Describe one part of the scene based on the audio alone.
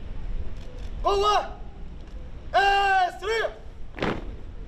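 A man shouts drill commands in long, drawn-out calls outdoors.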